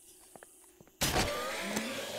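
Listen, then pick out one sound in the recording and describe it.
A crossbow fires with a sharp snap.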